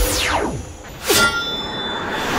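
A magical blast whooshes loudly.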